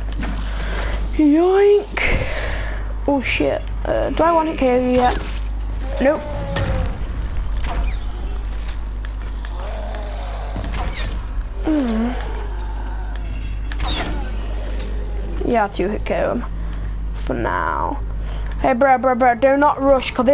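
A crossbow fires a bolt with a sharp snap.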